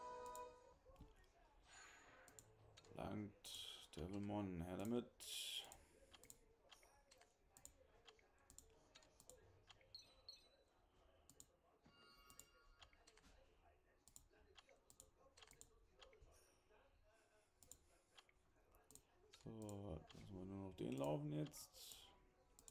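Menu buttons click and chime.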